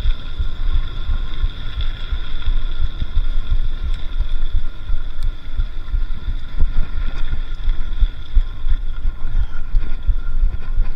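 Wind buffets loudly, as if a microphone is rushing through open air.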